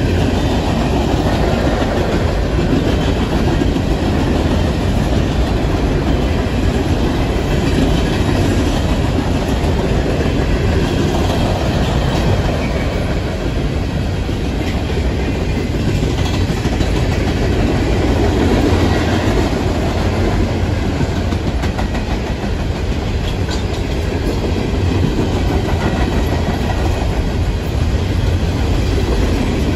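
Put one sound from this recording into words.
A long freight train rumbles and rattles steadily past nearby.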